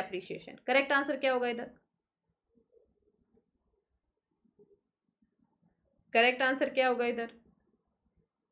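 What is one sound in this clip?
A young woman speaks calmly and clearly into a close microphone, in short phrases with pauses.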